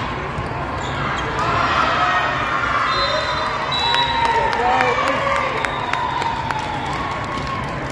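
Shoes squeak sharply on a gym floor.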